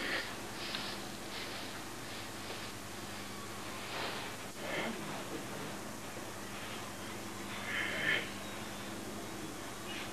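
Loose clothing swishes with quick movements.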